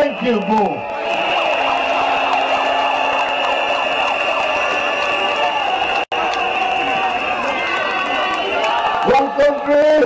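A large crowd cheers and sings loudly.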